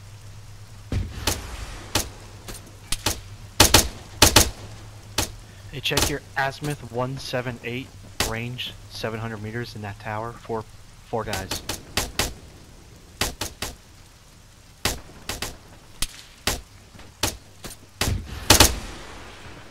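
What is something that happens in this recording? A gun fires single shots.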